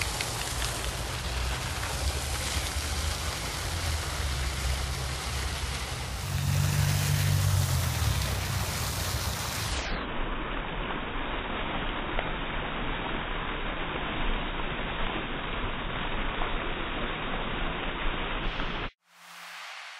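A fountain splashes steadily nearby.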